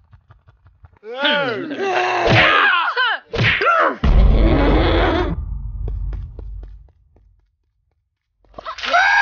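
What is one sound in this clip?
A young woman speaks angrily in a cartoonish voice.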